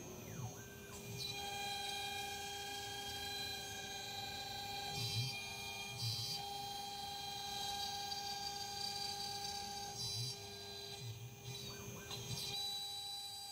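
A router bit cuts through plastic sheet with a rasping hiss.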